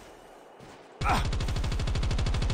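A rifle fires rapidly in a steady burst.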